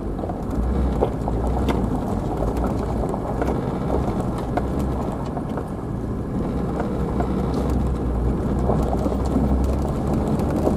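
Tyres crunch and rattle over a gravel track.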